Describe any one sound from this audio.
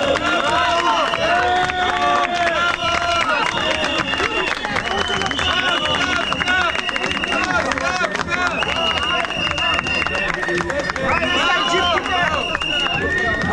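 A large crowd of people talks and chatters loudly outdoors.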